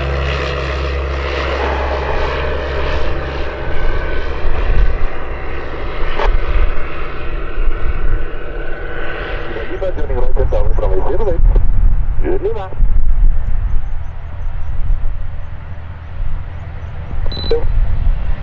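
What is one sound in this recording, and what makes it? A small propeller plane's engine drones steadily nearby.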